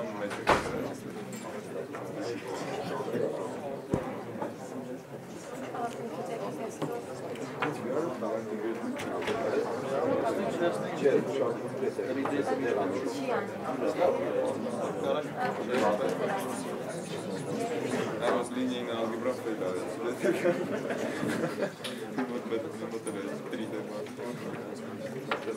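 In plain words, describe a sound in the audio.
A young man speaks calmly to an audience in a room with a slight echo.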